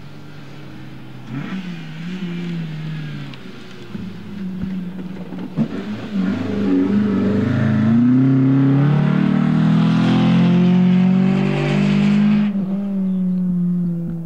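Tyres rumble and crunch over rough dry ground.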